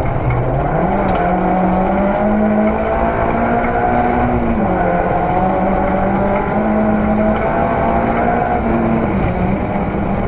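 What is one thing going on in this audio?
A man reads out pace notes through an intercom.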